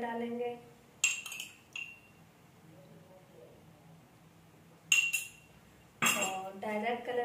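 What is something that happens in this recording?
A metal spoon clinks against a steel pot.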